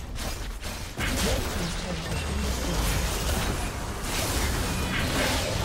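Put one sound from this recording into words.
Magical spell effects whoosh and blast in rapid bursts.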